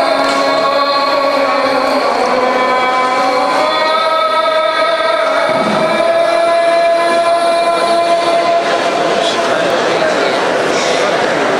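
A man chants in long, drawn-out melodic tones through a microphone, echoing in a large hall.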